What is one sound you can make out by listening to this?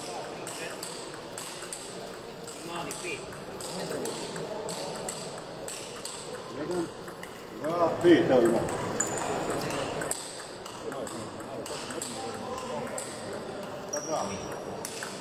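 A ping-pong ball clicks back and forth between paddles and table in a large echoing hall.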